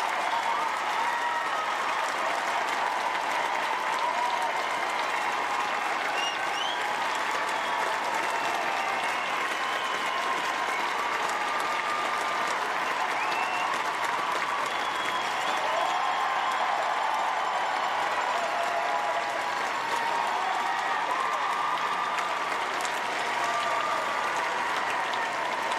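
A crowd cheers and whistles loudly.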